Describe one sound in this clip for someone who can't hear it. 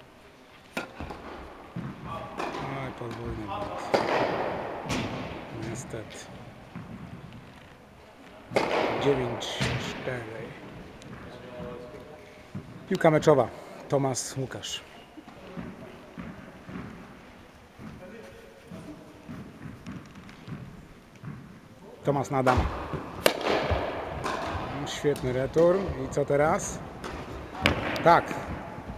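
A tennis ball bounces on the court.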